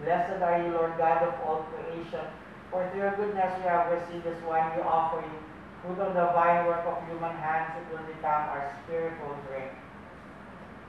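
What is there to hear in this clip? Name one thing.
A man chants in a steady, sung voice, then falls silent.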